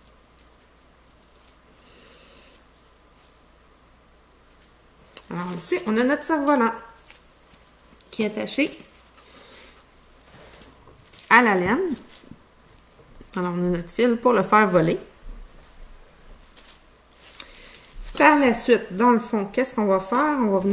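Paper rustles as it is folded and handled.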